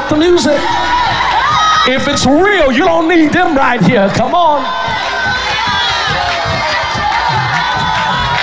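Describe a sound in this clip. A crowd shouts and cheers with excitement.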